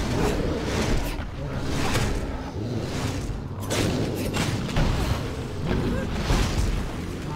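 Heavy blows thud and crash during a fight.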